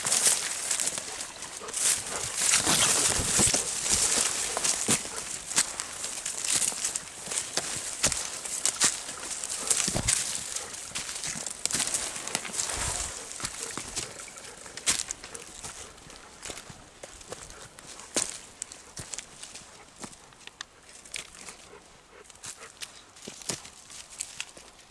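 Twigs and dry leaves crunch underfoot.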